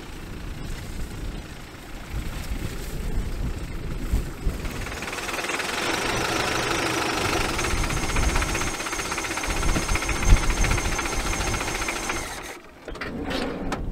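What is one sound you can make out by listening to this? Wind blows hard and gusts across open ground.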